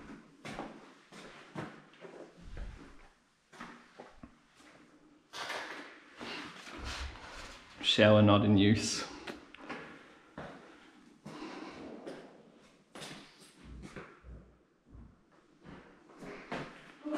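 Footsteps scuff and crunch across a floor scattered with debris.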